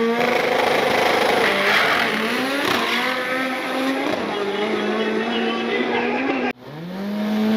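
A race car engine roars as the car launches and speeds away.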